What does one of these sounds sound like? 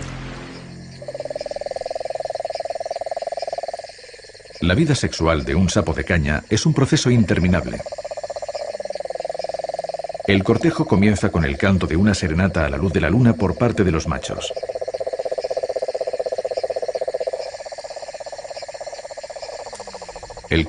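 A toad gives a long, steady trilling call.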